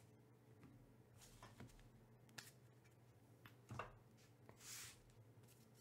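Hands handle a small blade close by, with soft clicks and knocks.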